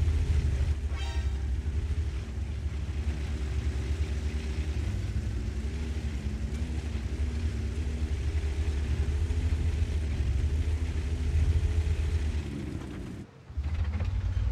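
A tank engine rumbles steadily as the tank drives along.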